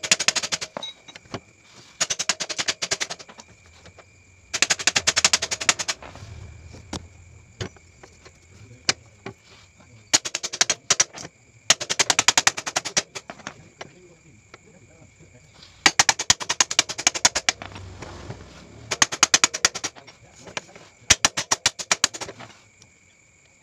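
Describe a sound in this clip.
A ratchet wrench clicks rapidly in short bursts.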